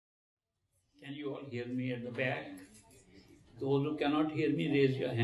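An elderly man speaks with animation into a microphone, close by.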